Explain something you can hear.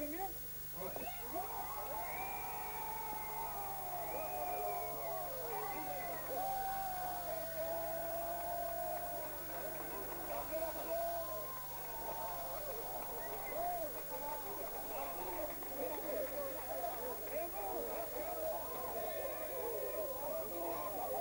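A group of men and women shout and laugh joyfully close by.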